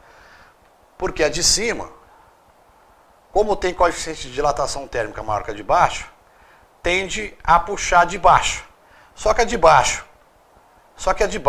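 A man speaks clearly and steadily, close to a microphone, as if teaching.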